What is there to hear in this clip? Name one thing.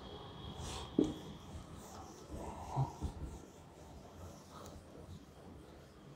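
A board eraser rubs across a whiteboard.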